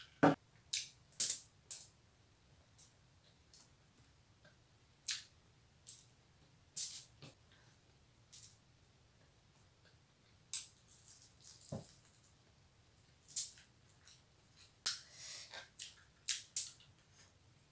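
A woman chews and smacks food up close.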